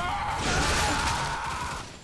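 A gun fires with loud blasts.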